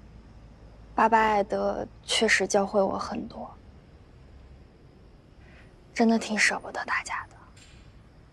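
A young woman speaks softly and earnestly.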